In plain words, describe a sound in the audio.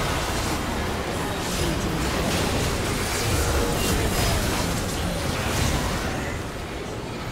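Magic blasts and explosions crackle and boom in a hectic fight.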